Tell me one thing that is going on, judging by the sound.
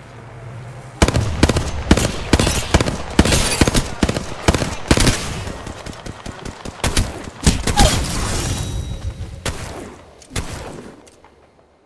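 Rapid gunfire crackles in quick bursts.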